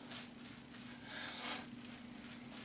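A shaving brush softly swishes lather against skin.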